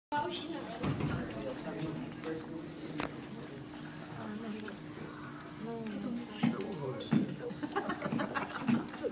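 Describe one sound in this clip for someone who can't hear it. Children and adults chatter quietly around a large echoing hall.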